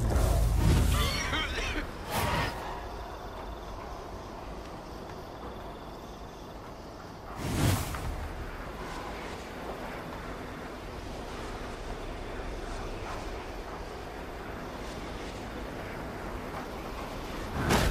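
A magical whoosh rushes past in short bursts.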